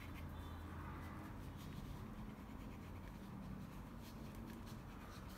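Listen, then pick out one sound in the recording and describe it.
A paintbrush softly brushes across canvas.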